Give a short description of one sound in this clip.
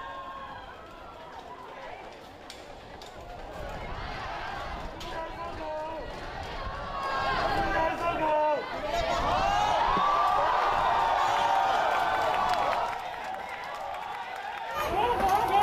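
A crowd of people shouts and chants outdoors.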